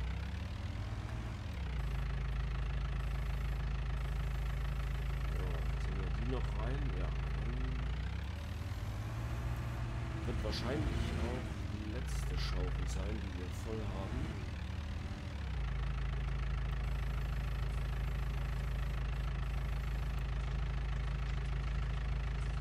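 A wheel loader's diesel engine rumbles steadily close by.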